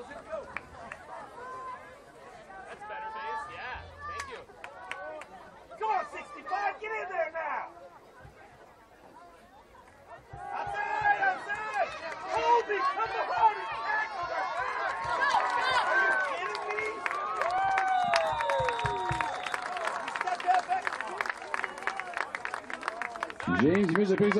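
A crowd of spectators and players shouts and cheers outdoors.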